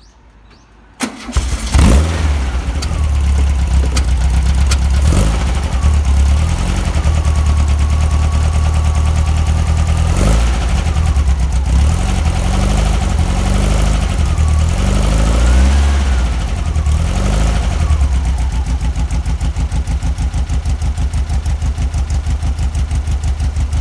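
A car engine starts up and idles with a steady, rumbling putter.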